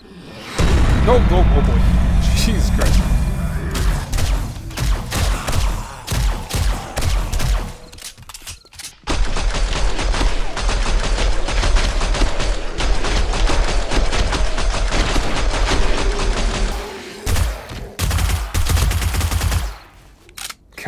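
A rifle fires in rapid bursts of loud shots.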